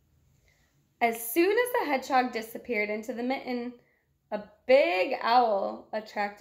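A young woman reads aloud calmly, close by.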